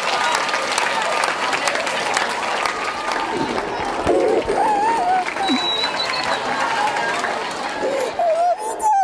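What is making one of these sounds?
A crowd of children cheers and chatters loudly.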